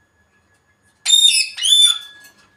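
A parrot whistles loudly in short rising and falling calls.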